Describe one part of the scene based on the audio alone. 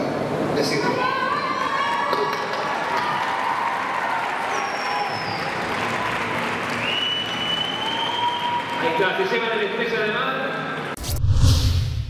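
A crowd cheers and screams loudly in a large arena.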